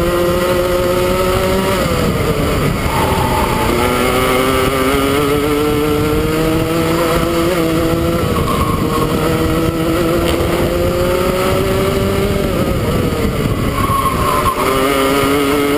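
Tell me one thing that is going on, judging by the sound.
A small kart engine whines loudly close by, rising and dropping in pitch as it shifts through the corners.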